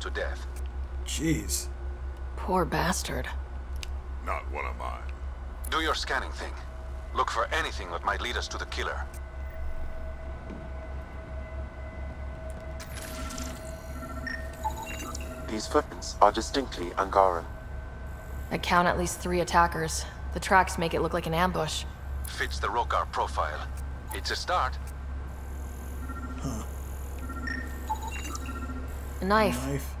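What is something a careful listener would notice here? A young man talks casually into a headset microphone, close by.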